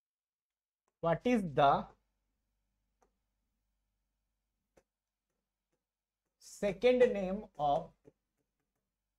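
A man speaks calmly, close by, in short bursts.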